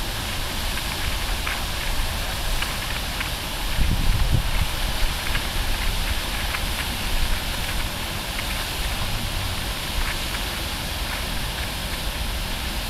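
A fountain's jets spray and splash down onto a pond.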